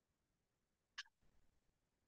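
A plastic cup knocks on a table.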